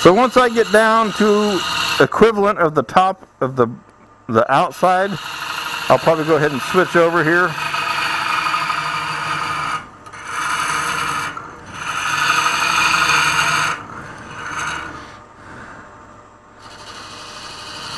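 A lathe hums steadily.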